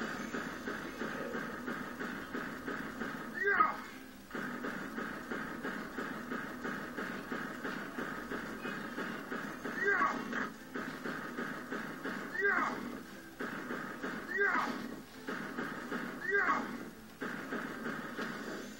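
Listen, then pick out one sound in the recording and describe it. Upbeat video game music plays steadily through a television speaker.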